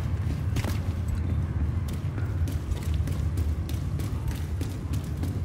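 Footsteps clank on a metal walkway.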